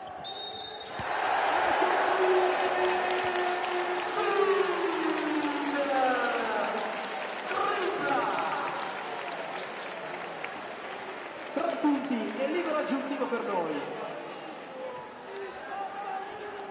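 A crowd in a large echoing arena cheers and shouts.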